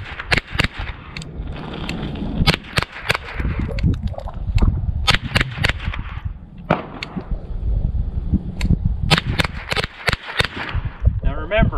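A rifle fires rapid, sharp shots outdoors.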